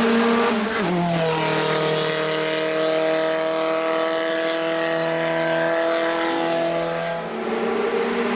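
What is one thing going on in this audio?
A car engine drones and fades as the car speeds away along a winding road.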